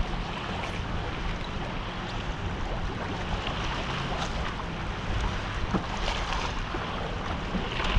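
A fishing reel clicks as a hand winds it.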